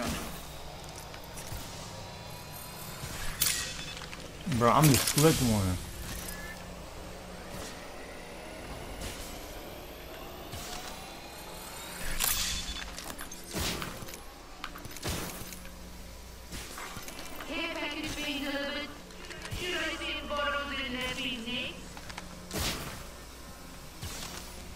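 Short electronic game sound effects whoosh and click now and then.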